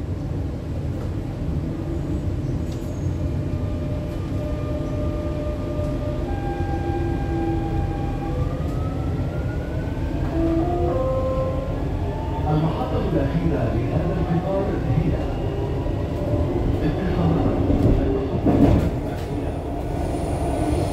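A train rumbles steadily along the track.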